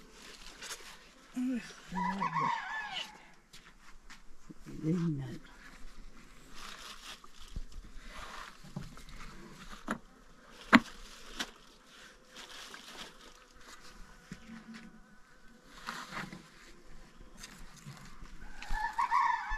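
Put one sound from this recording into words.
Plastic bags and cloth rustle as a woman rummages through sacks.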